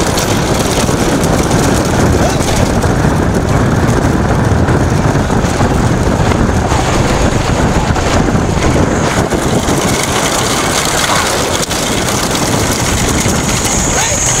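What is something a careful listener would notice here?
Wooden cart wheels rumble over asphalt.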